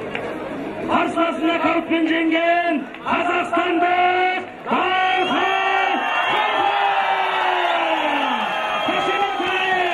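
A man announces loudly and drawn out through a loudspeaker.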